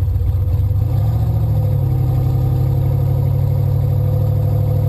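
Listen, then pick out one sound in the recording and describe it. A car engine revs up as the car pulls away.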